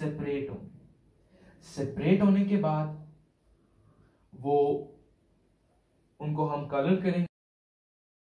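A young man explains calmly, close by.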